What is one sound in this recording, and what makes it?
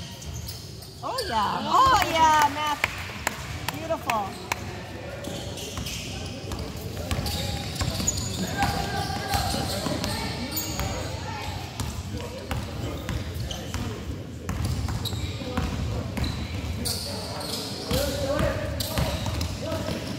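Sneakers squeak on a hard court in a large echoing gym.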